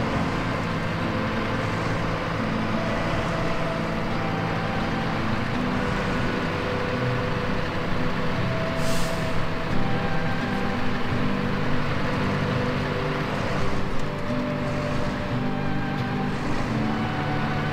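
Tyres crunch and churn through deep snow.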